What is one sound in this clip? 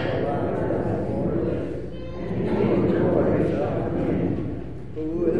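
An elderly man speaks calmly in a large echoing hall.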